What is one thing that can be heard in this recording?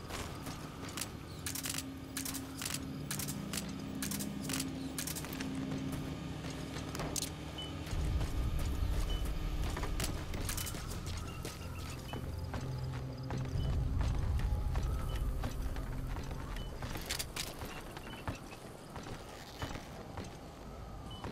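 Footsteps crunch quickly over gravel and hard ground.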